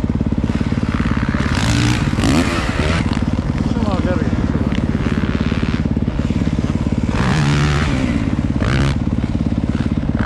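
Another dirt bike roars past on the track nearby.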